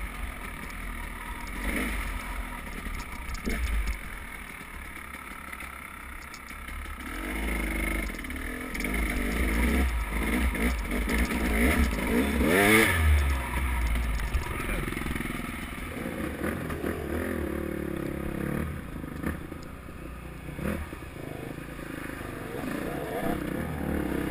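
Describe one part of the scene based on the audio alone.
A motorcycle engine revs and drones close by.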